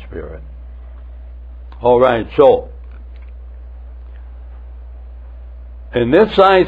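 An elderly man speaks slowly through a microphone, with long pauses.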